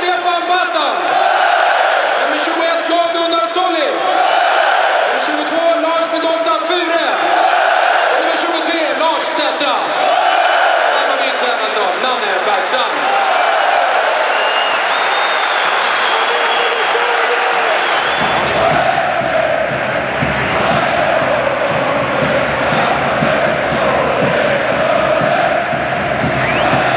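A large stadium crowd sings together loudly in an echoing arena.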